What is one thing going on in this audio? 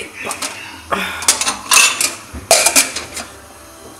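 Glasses clink against each other in a cupboard.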